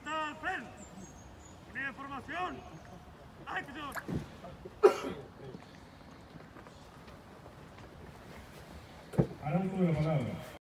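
A man shouts loud military commands outdoors.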